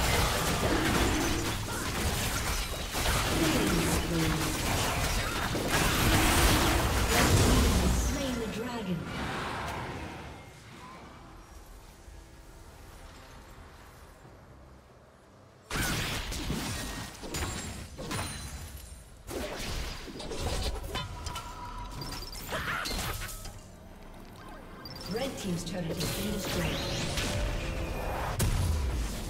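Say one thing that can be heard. Game spells and blows crackle and thud in a hectic battle.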